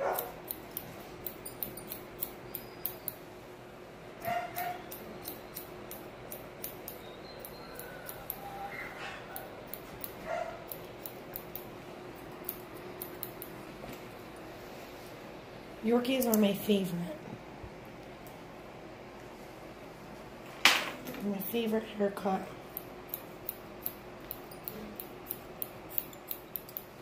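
Small scissors snip quickly and repeatedly, close by.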